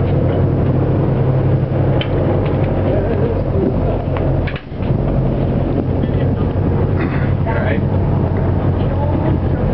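Several adults talk with animation nearby.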